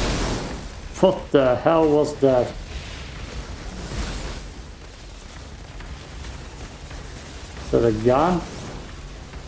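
A young man speaks with animation into a nearby microphone.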